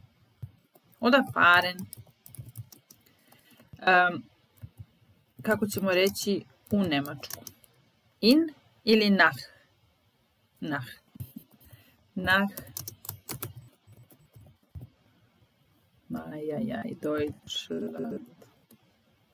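A young woman speaks calmly over an online call, in short phrases with pauses.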